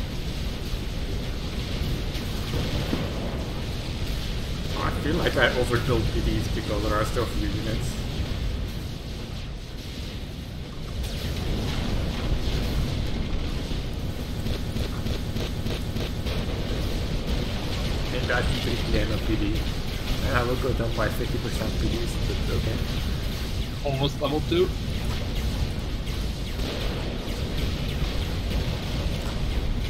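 Distant battle noise rumbles low and steadily.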